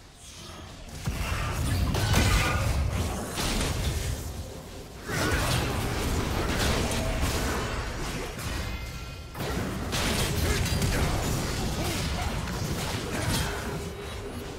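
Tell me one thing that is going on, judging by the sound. Game spells blast and clash in a busy fight.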